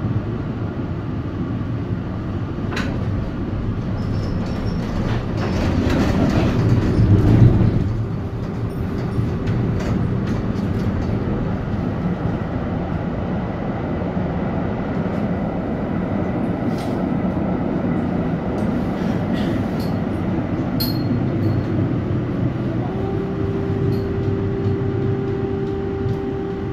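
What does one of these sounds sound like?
A vehicle's engine rumbles steadily from inside as it drives along.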